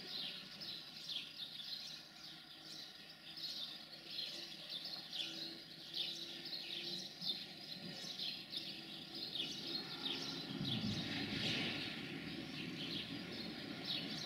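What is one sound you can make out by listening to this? A train rumbles along the tracks as it approaches.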